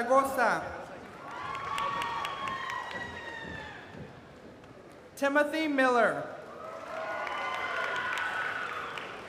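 A crowd cheers and whoops in a large echoing hall.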